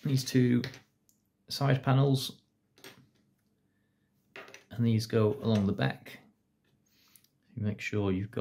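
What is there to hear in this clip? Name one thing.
Plastic model parts click and rub as they are fitted together.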